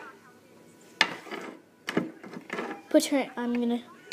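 A metal tin clanks as it is set down on a hard floor.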